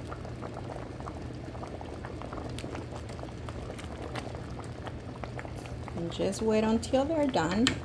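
A wooden spoon stirs and scrapes through a thick stew.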